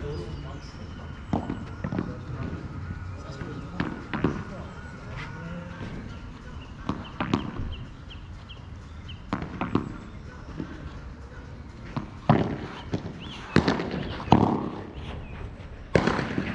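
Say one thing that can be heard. A ball bounces on the court and off the glass walls.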